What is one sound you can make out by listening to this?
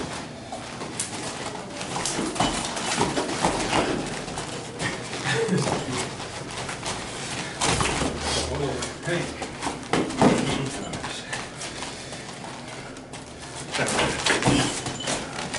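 Hands slap against arms as two men spar.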